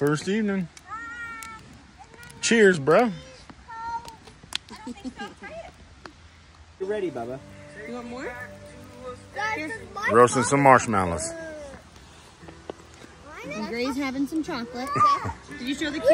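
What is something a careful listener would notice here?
Young children talk and shout excitedly close by.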